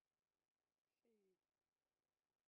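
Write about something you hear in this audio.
A synthesizer plays a short note that slides downward in pitch.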